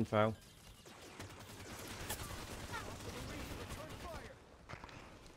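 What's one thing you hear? An automatic rifle fires rapid shots.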